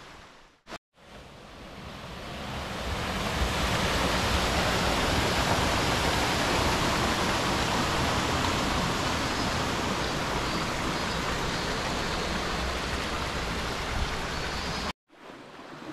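A stream rushes and splashes over rocks close by.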